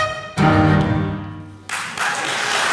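A cello and piano play a final ringing chord.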